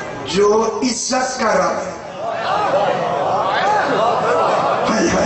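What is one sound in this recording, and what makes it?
An elderly man speaks with passion into a microphone, heard through loudspeakers.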